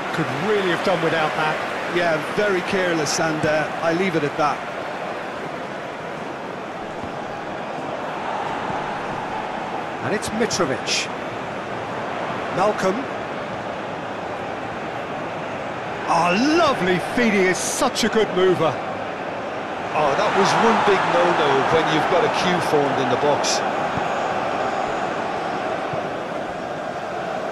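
A football is kicked with short thuds now and then.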